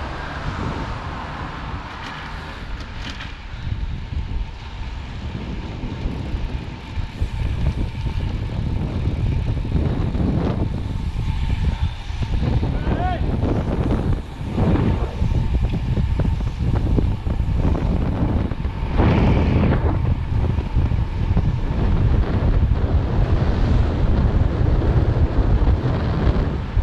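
Wind rushes past, growing louder as speed picks up.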